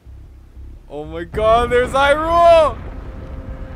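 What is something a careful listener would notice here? A young man exclaims loudly into a nearby microphone.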